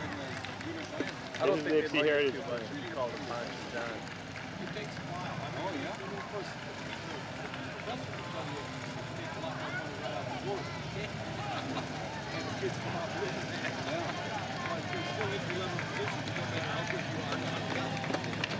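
Police motorcycles rumble past at low speed outdoors.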